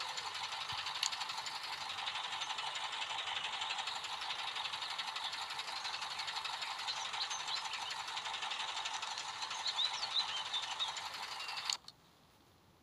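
A heavy diesel truck engine labours as the truck drives through mud.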